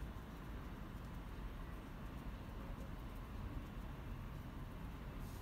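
A paintbrush dabs softly on paper.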